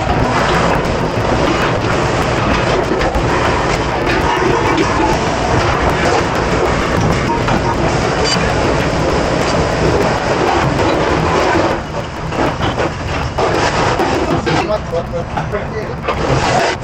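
Water sprays hard from a hose.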